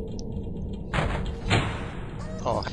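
A wooden shelf topples and crashes to the floor.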